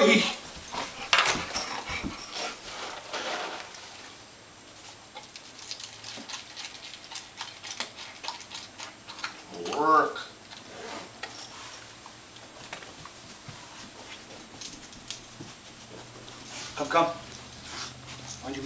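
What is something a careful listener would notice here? A man talks calmly to a dog nearby.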